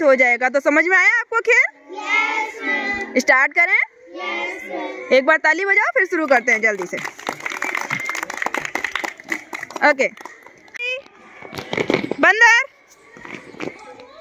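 Children sing together loudly outdoors.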